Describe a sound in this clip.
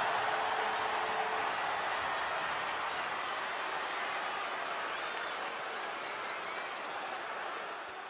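A large crowd cheers and roars loudly in a big arena.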